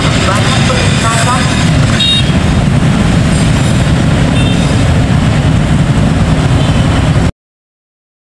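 Motorcycle engines idle and rev nearby.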